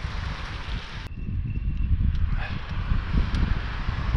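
A car passes by on the road.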